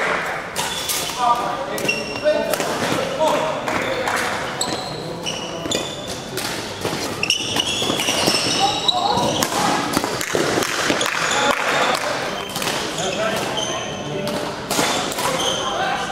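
Shuttlecocks are struck with rackets in sharp pops, echoing in a large hall.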